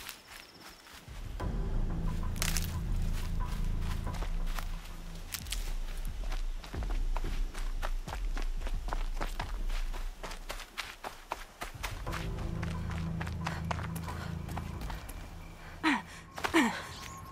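Footsteps run quickly through grass and brush.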